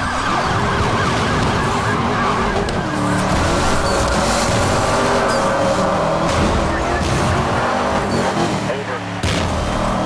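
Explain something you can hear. A car engine roars at high speed.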